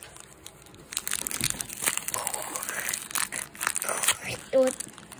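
Scissors snip through a foil wrapper.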